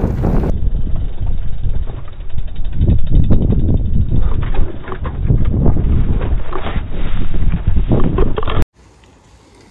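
A mountain bike rolls fast downhill over grass.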